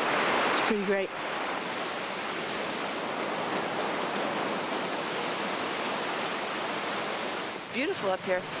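A waterfall roars and splashes steadily nearby.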